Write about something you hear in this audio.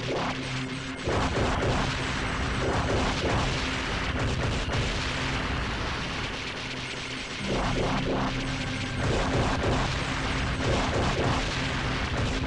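Explosions burst loudly in a video game.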